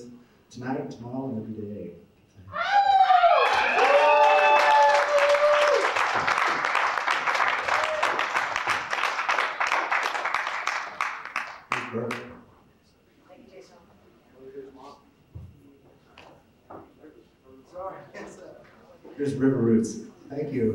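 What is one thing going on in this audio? A young man speaks calmly into a microphone in an echoing hall.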